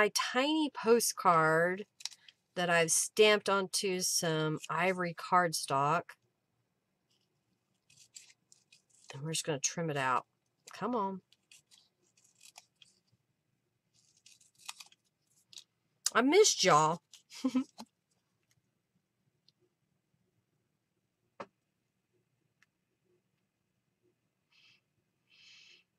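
Small scissors snip paper.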